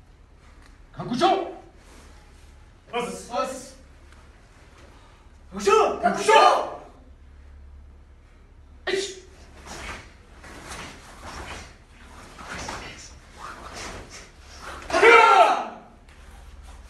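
A group of young people shout loudly in unison.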